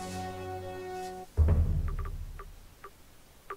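A short game jingle plays and ends with a deep thud.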